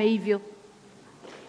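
A middle-aged woman speaks into a microphone.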